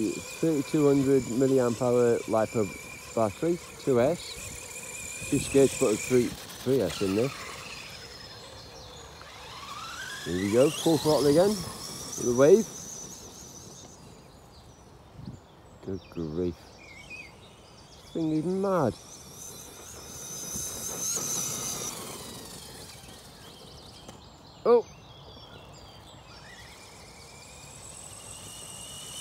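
A small electric motor of a toy car whines as the car speeds across grass outdoors.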